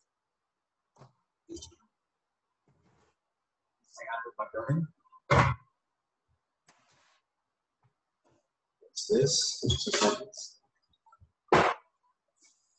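Dishes clink.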